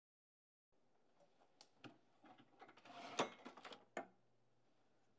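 Objects knock and rustle as a drawer is rummaged through.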